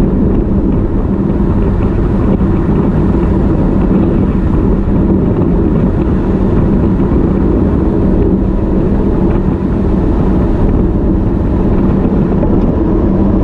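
Strong wind rushes and buffets loudly.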